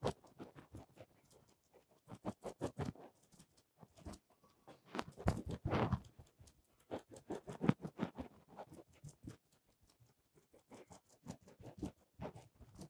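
A sponge dabs paint onto a canvas with quick, soft taps.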